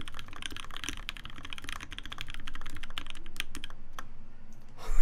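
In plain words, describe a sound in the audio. Keys clatter rapidly as someone types on a mechanical keyboard.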